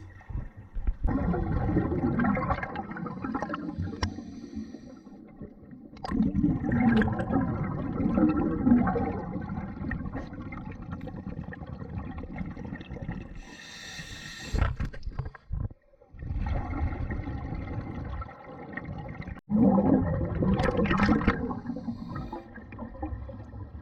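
A diver's breath bubbles gurgle and rumble underwater.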